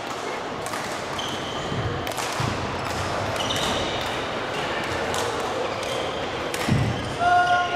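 Several women chatter and call out nearby.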